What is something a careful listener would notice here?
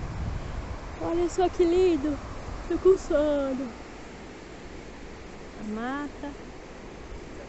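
A young girl talks nearby with animation.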